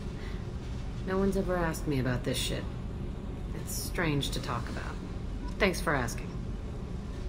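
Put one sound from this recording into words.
A young woman speaks in a low, casual voice, close by.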